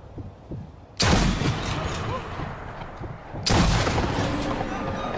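A rifle fires loud shots that boom and echo away.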